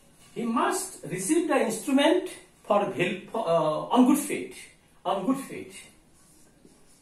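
An elderly man speaks clearly and firmly, close by.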